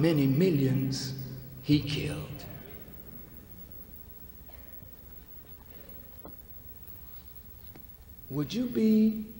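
A man speaks slowly and forcefully through a microphone in a large echoing hall.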